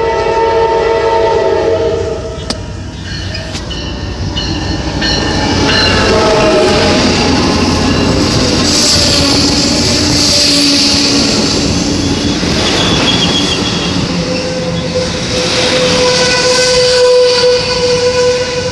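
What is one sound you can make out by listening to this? A train rumbles past close by, its wheels clattering on the rails.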